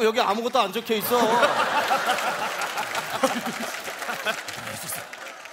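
A woman laughs out loud.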